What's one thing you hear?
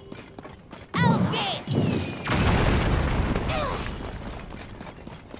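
A burst of fire roars up with a whoosh.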